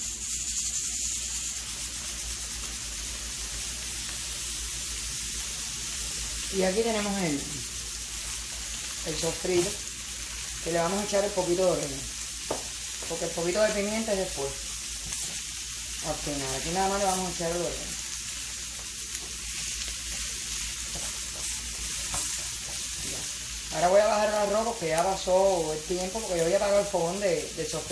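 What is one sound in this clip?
Onions sizzle softly in a hot pan.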